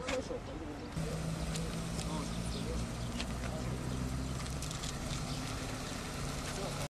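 A car engine idles nearby with a low, steady hum.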